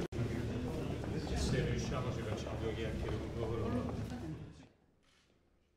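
A crowd of men talk and murmur close by.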